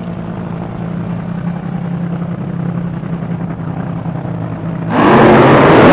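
Dragster engines idle with a deep, rumbling drone.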